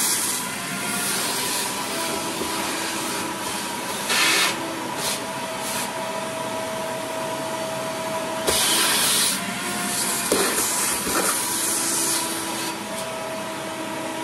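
A vacuum cleaner hums steadily and sucks up debris.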